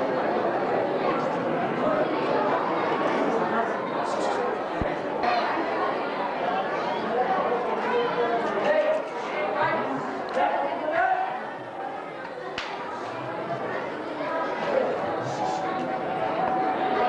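A man speaks with animation, heard through a loudspeaker in an echoing hall.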